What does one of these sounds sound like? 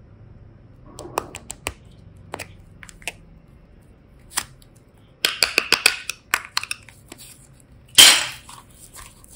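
Plastic toy pieces click and tap against each other.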